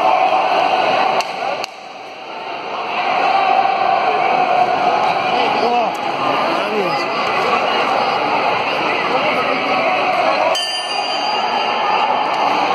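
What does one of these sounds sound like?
Spectators talk and murmur in a large echoing hall.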